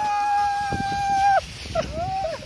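A man shouts with excitement close by.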